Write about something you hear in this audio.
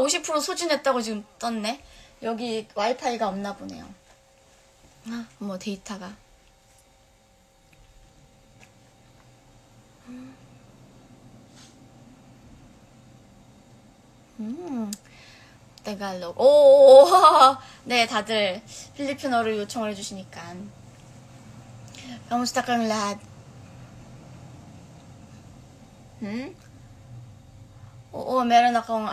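A young woman talks softly and close to a microphone, in short bursts with pauses.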